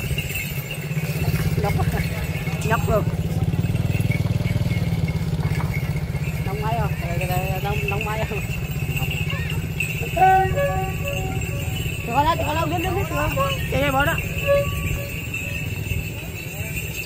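Motorbike engines putter slowly close by.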